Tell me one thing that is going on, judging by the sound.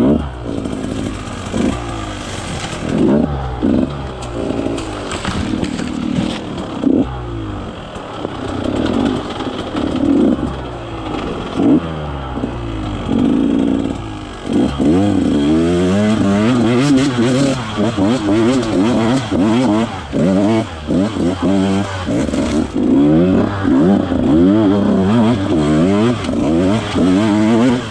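A dirt bike engine revs up and down close by, loud and rising and falling.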